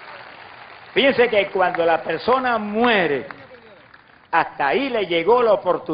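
An elderly man preaches forcefully into a microphone, his voice booming over loudspeakers in a large open space.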